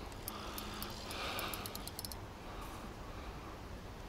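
A fishing reel whirs as its handle is wound.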